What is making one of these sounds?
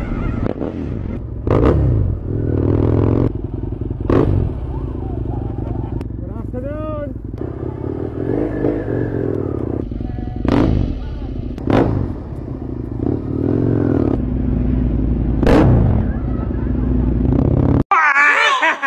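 A motorcycle engine idles and revs up close.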